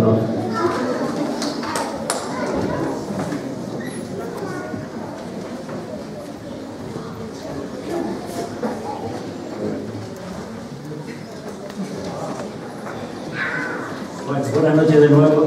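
Children and adults murmur and chatter nearby.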